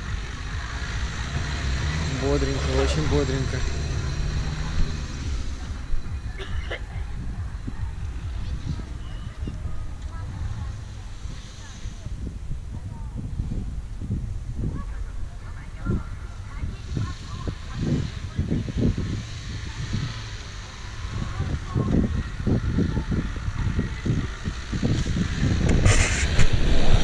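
A car engine revs as it climbs through soft sand.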